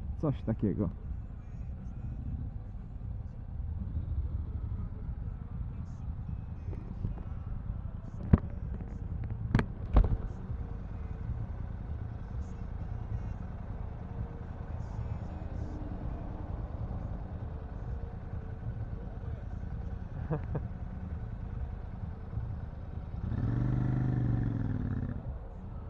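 A motorcycle engine idles close by with a low rumble.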